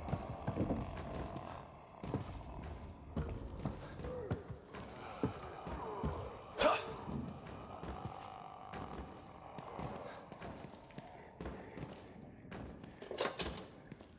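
Footsteps thud on creaky wooden boards.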